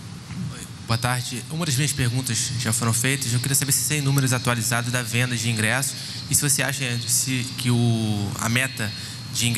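A young man asks a question into a handheld microphone, heard over loudspeakers.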